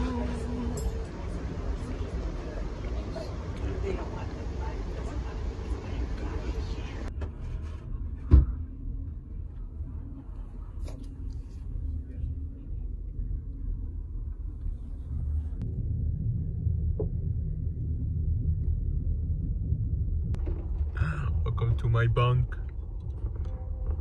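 A passenger train rumbles along the tracks.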